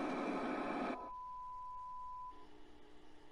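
A steady high test tone sounds.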